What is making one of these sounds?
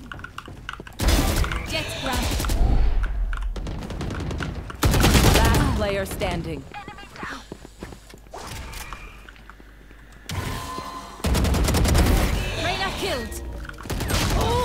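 Gunfire rattles in quick bursts from a game.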